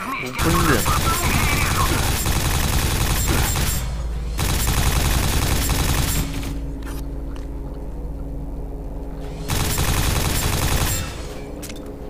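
A rapid-firing gun shoots in loud, quick bursts.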